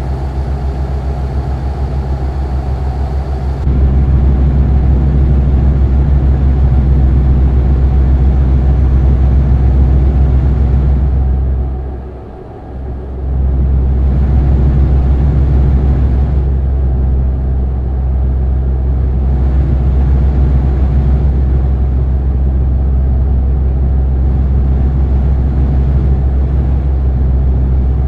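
A truck engine hums low and steady, dropping briefly for a moment.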